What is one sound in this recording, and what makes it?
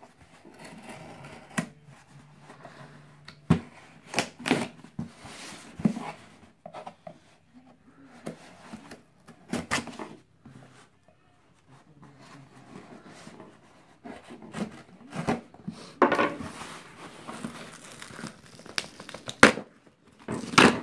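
Hands tap and slide on a cardboard box.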